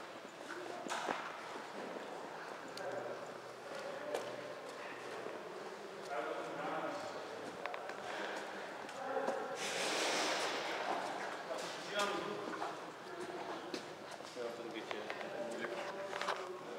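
A man speaks in a low, tense voice nearby.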